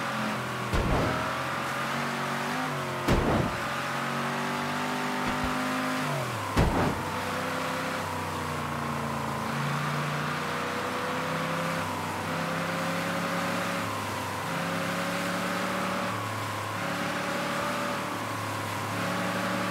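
A car engine hums and revs steadily, shifting through gears.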